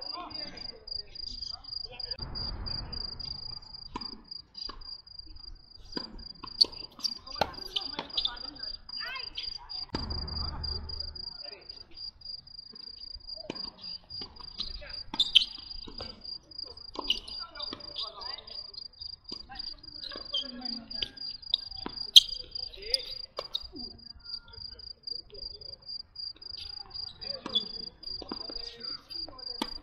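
Sneakers squeak and scuff on a hard court.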